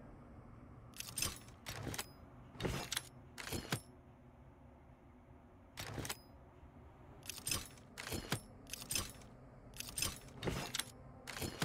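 Short electronic swooshes sound as game pieces slide into place.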